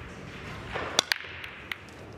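A cue sharply breaks a rack of pool balls.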